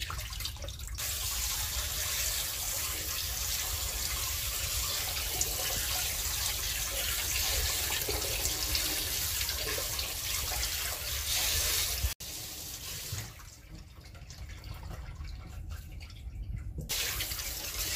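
Tap water splashes and patters into a plastic bowl.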